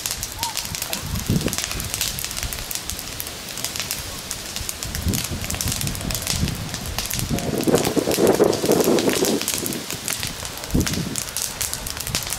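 A wood fire crackles outdoors.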